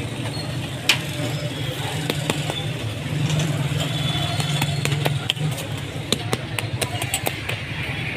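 A metal spatula scrapes and clatters on a hot griddle.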